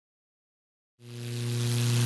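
A small propeller plane's engine drones close by.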